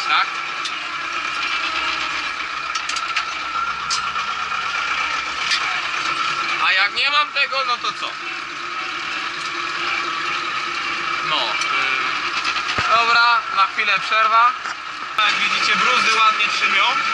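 A tractor cab rattles and squeaks over rough ground.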